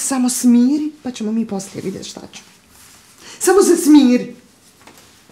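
A woman speaks firmly and urgently nearby.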